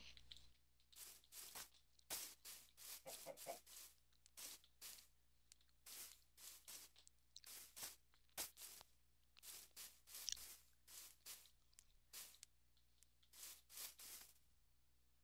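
Soft footsteps crunch on grass.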